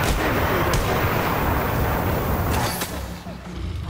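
A flamethrower roars in a loud, rushing blast.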